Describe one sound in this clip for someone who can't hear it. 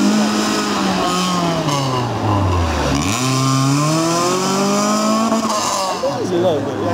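A second car engine roars and revs as it passes close by and drives away.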